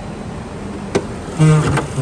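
A car bonnet latch clicks open.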